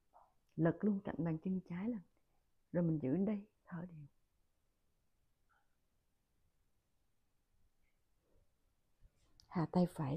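A woman speaks calmly and clearly, close to the microphone.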